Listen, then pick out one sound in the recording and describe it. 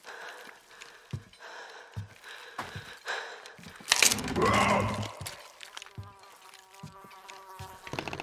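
Footsteps scuff on stone.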